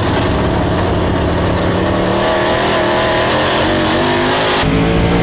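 Tyres and mud spray rumble on a dirt track.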